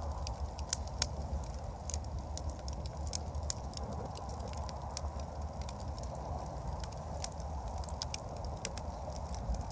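Flames roar softly in a fire.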